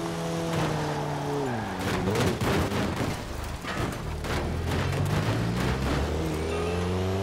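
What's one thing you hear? Tyres rumble and crunch over rough ground.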